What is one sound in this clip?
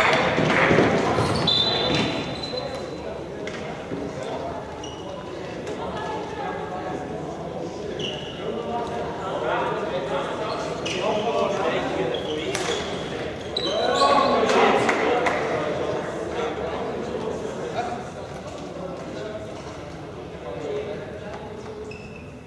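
Sticks click against a ball on the hard floor.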